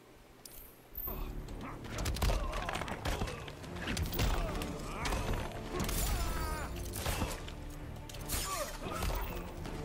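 Heavy punches and kicks thud in a fight.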